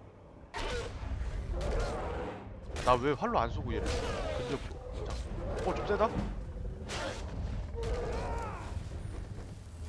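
A large beast bellows and roars.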